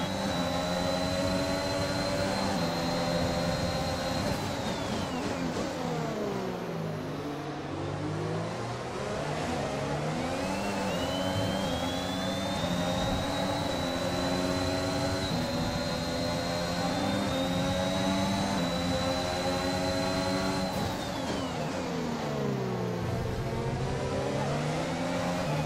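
A racing car engine screams at high revs, dropping in pitch when braking for corners and rising again as it accelerates.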